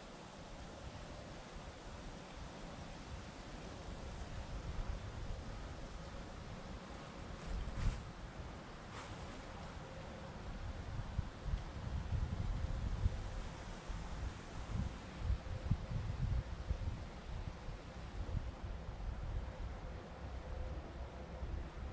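Wind gusts and rumbles outdoors, stronger in the second half.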